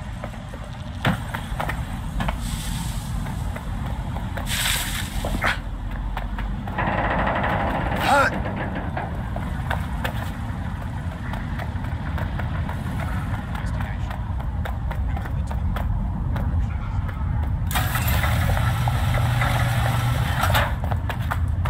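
Footsteps run quickly over concrete and rubble.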